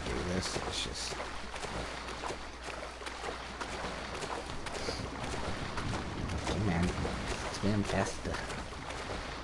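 Water splashes gently at a shoreline.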